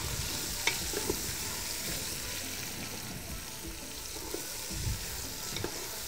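A spoon clinks against a metal pot while stirring.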